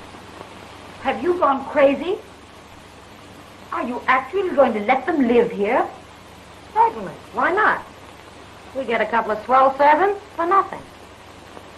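A woman talks with animation.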